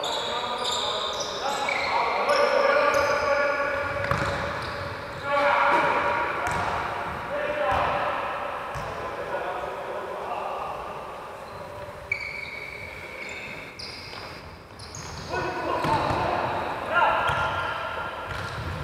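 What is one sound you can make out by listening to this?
A ball thuds as it is kicked and bounces.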